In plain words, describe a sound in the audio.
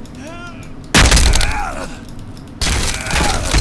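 An axe strikes hard with a loud crash.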